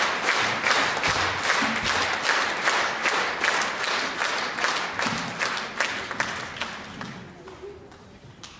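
An audience applauds in a large echoing hall, then fades.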